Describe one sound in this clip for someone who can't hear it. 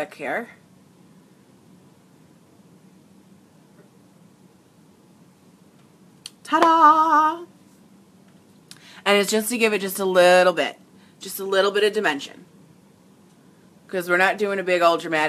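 A young woman talks casually and close by, in bursts with pauses.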